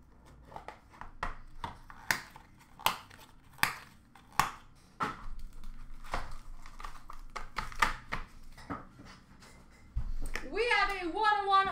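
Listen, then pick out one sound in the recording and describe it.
A cardboard box scrapes and rustles as hands move it.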